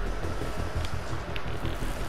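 A small fire burns and crackles.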